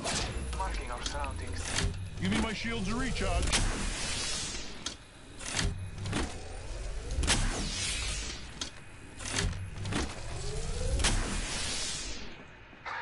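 A shield recharge hums and crackles with electric sparks.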